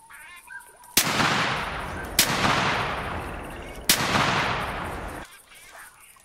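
A shotgun fires several booming shots outdoors.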